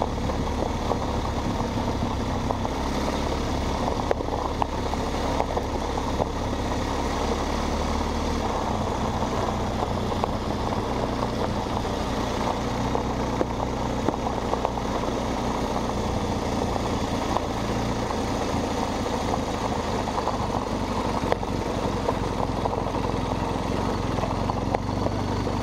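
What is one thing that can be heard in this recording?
Small stones click and ping against the underside of the motorcycle.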